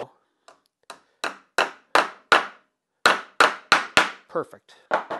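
A hammer taps sharply on metal several times.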